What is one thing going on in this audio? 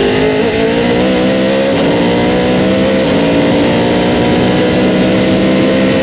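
A racing car engine roars loudly up close, its pitch rising and dropping with gear changes.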